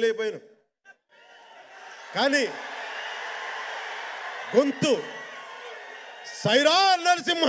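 A man speaks loudly through a microphone in a large hall.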